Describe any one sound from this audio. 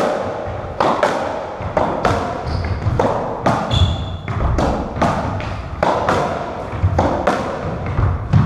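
A squash ball smacks sharply against the walls, echoing in the court.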